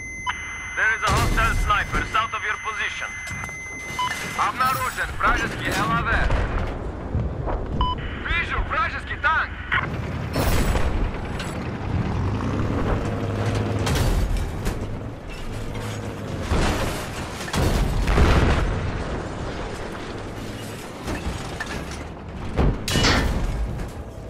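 A tank cannon fires with heavy booming blasts.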